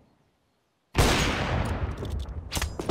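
A sniper rifle fires a single loud shot that rings out.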